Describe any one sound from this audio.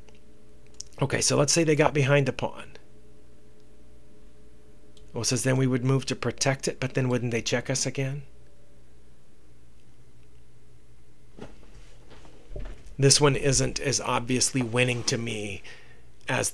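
A middle-aged man talks calmly and explains into a close microphone, with pauses.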